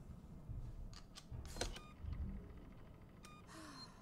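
Buttons click sharply.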